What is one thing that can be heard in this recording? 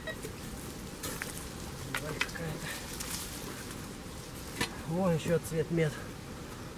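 A shovel scrapes and digs into dry soil close by.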